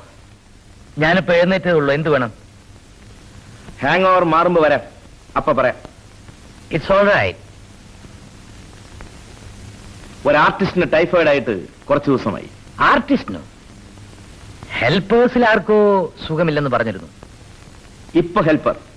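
A man speaks forcefully, close by.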